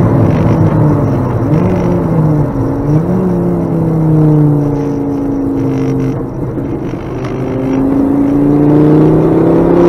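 A car engine roars from inside the cabin, rising and falling as gears change.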